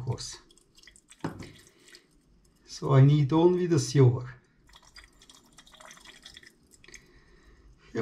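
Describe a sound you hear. Liquid trickles and splashes into a funnel.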